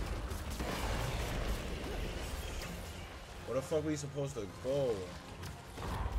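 Game fire roars with a low rumble.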